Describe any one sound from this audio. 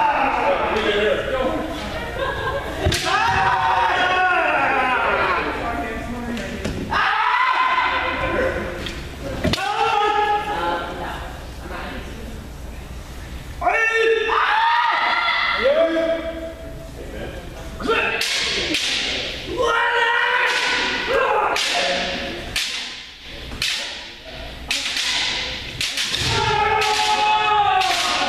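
Fencers shout loudly in a large echoing hall.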